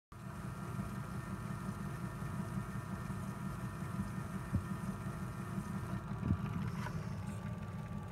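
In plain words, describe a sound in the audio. A worn record surface crackles and hisses steadily.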